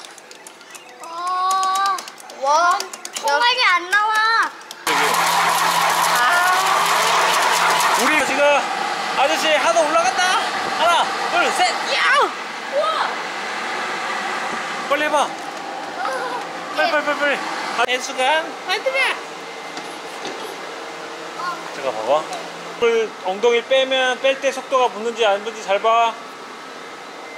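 Young children talk and exclaim excitedly close by.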